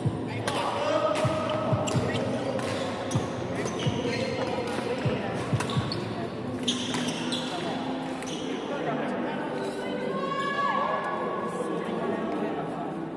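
Rackets hit shuttlecocks with sharp taps in a large echoing hall.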